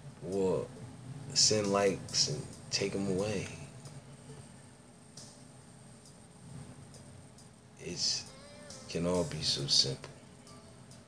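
A man speaks casually close to a phone microphone, in short bursts with pauses.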